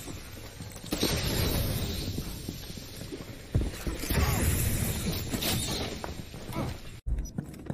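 Gas hisses loudly from a bursting canister.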